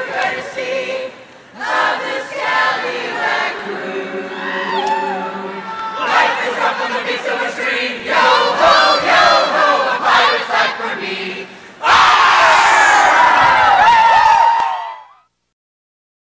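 A large choir of young men and women sings loudly together in a big echoing hall.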